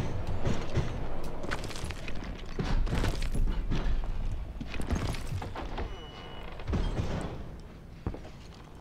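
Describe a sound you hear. Footsteps thud and creak on wooden floorboards.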